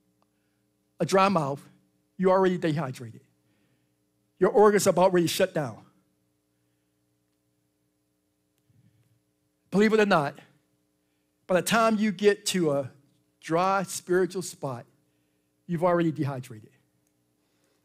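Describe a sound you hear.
A man speaks steadily to an audience through a microphone, in short phrases with pauses.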